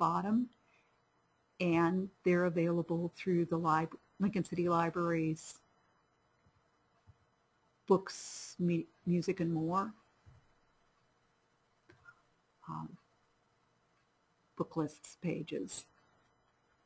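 A woman speaks calmly into a microphone, in short bursts with pauses.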